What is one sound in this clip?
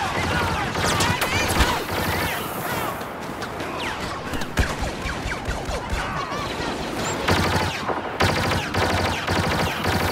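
Laser blasters fire in rapid bursts nearby and far off.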